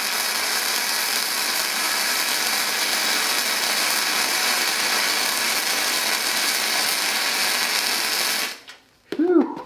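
An arc welder crackles and sizzles steadily.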